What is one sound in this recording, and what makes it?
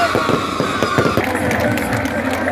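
Fireworks crackle and bang overhead.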